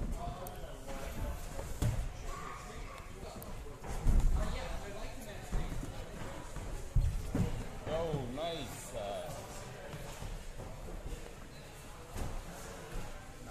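Climbing shoes scuff and knock against wall holds.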